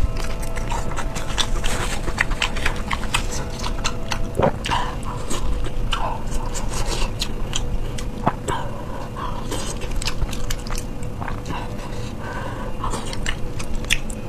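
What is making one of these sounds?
A young woman chews and slurps food wetly, close to a microphone.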